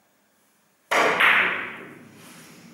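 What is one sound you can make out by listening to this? A cue strikes a billiard ball with a sharp clack.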